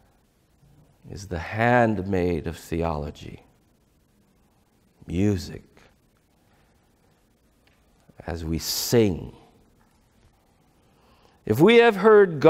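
A middle-aged man speaks calmly through a clip-on microphone, with pauses between phrases.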